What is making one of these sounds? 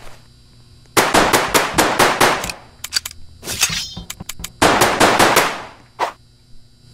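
Rapid game gunshots crackle in quick bursts.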